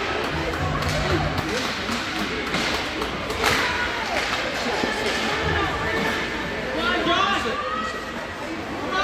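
Hockey sticks clack against the puck and ice.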